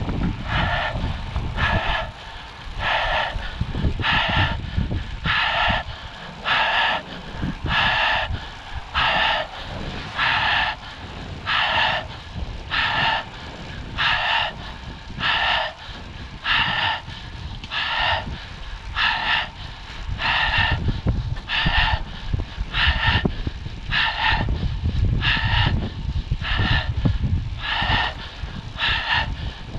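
Wind rumbles and buffets against the microphone while riding.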